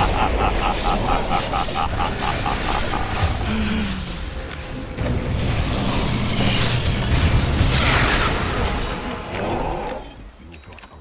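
Game spell effects crash and blast loudly during a fight.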